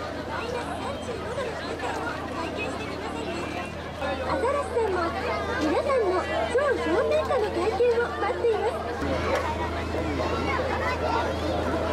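A crowd chatters and murmurs outdoors.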